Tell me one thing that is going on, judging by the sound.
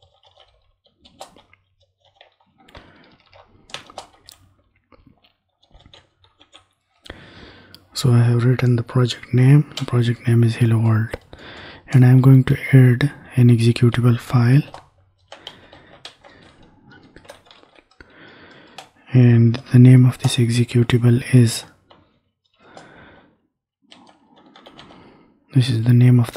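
Keys click softly on a keyboard.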